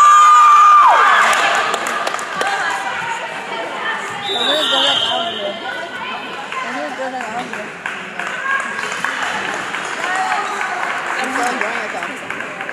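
Teenage girls shout and cheer in an echoing gym.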